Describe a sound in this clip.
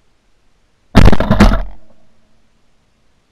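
A shotgun fires a loud blast close by and echoes away.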